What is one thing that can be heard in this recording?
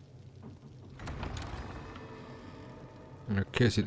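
Heavy wooden doors creak open.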